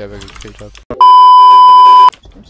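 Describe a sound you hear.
A steady, high test tone beeps loudly.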